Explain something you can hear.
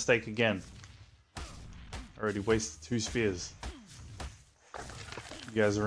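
A hatchet chops into a carcass with dull thuds.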